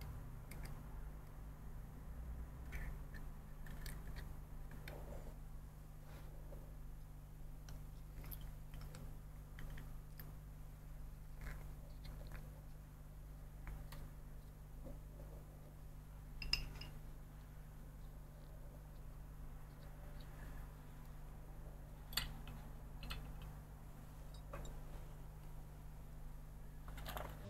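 Small plastic parts click and snap together in a person's hands.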